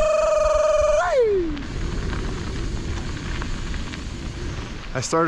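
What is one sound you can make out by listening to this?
Bicycle tyres crunch over a dirt road.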